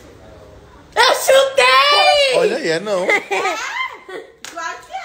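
A young girl shouts excitedly close by.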